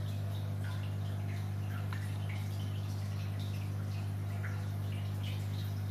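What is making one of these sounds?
Air bubbles gurgle and crackle softly in water.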